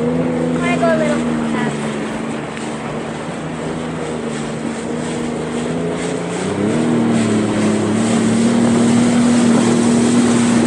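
A boat engine drones steadily and rises in pitch.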